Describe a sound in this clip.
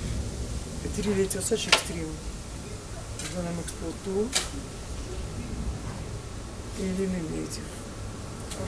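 A young woman speaks in short bursts close by.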